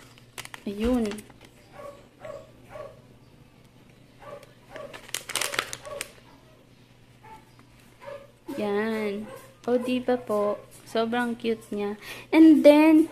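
A plastic bag of popcorn crinkles and rustles in a hand.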